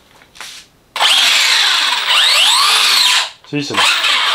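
A small electric motor whirs and revs in quick bursts.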